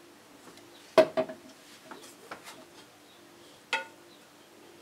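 A metal pan knocks against a stovetop.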